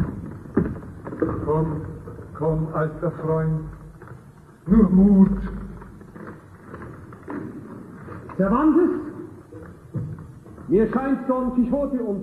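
Adult men sing loudly in turn, echoing in a large hall.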